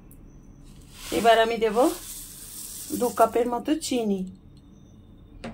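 Sugar pours from a bowl into liquid in a steel blender jar.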